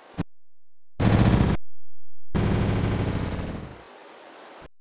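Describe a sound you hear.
A campfire bursts into flame with a loud whoosh.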